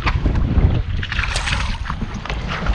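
Water splashes as a net scoops a fish from the sea.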